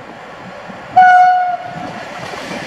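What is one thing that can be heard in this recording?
A train horn sounds a short, loud blast.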